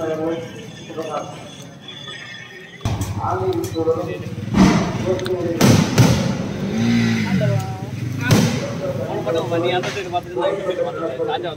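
Fireworks burst with loud bangs and crackles overhead.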